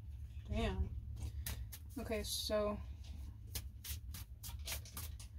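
Playing cards are shuffled by hand, riffling and flicking.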